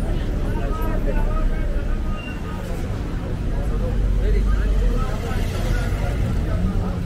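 A car engine idles and rolls slowly by.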